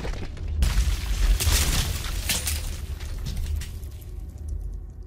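Heavy stone blocks crash and tumble down.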